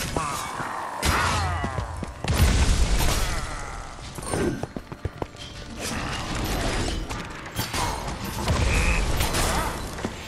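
Explosions burst with a crackle.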